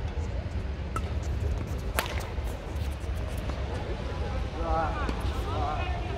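Rackets strike a shuttlecock with sharp taps in a large echoing hall.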